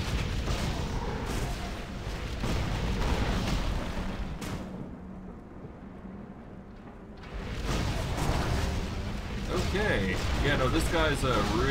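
Blades and blows clash in combat.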